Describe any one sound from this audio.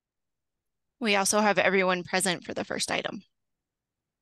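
A woman speaks calmly through a headset microphone on an online call.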